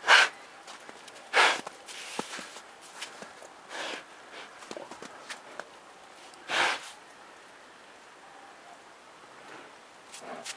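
A bear snuffles loudly with its nose in snow.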